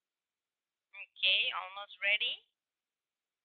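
A young woman speaks briefly and calmly through an online call.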